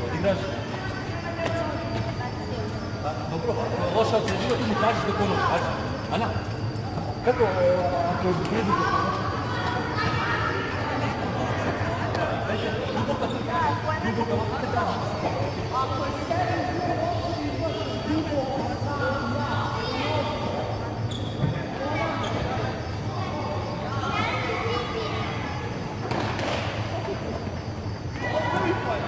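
Young children chatter and call out.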